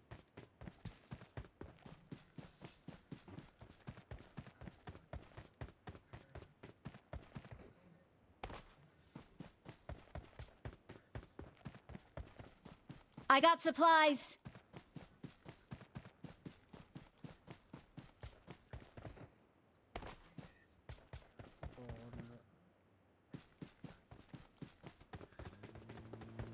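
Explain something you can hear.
Footsteps run on grass.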